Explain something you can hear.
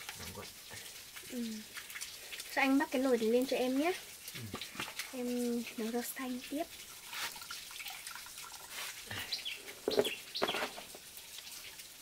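Water splashes in a pot as a chicken is stirred and lifted out.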